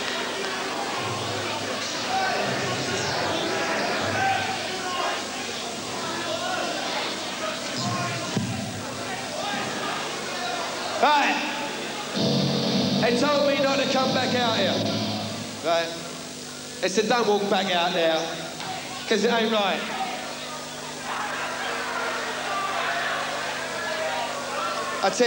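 A crowd murmurs and chatters close by.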